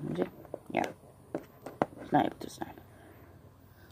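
Small plastic figures tap lightly on a wooden board.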